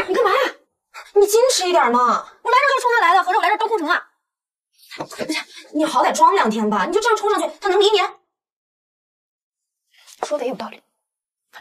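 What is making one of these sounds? A second young woman answers calmly, close by.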